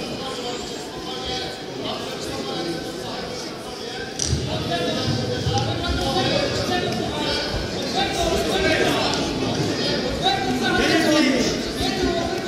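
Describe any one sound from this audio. A crowd in an indoor hall shouts and cheers, growing louder.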